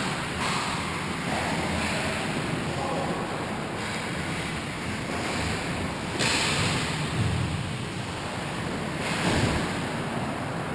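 Skate blades scrape and hiss across ice in a large echoing rink.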